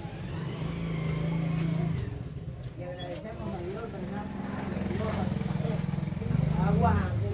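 A crowd of men and women talk and murmur close by.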